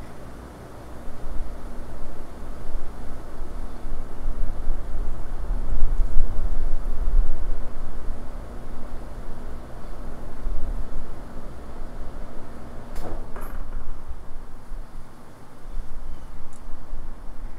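Wind gusts outdoors, buffeting the microphone.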